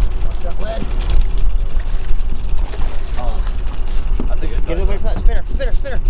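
A hooked fish splashes and thrashes at the water's surface.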